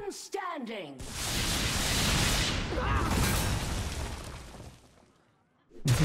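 Electric crackling bursts and fades.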